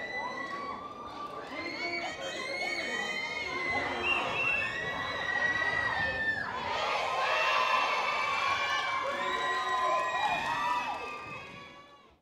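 A crowd of young fans screams and cheers loudly in a large echoing hall.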